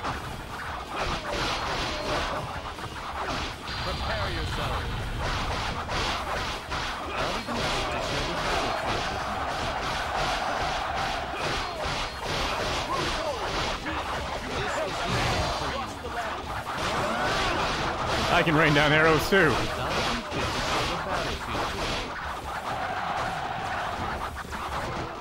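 Swords clash and slash again and again in a fast, busy melee.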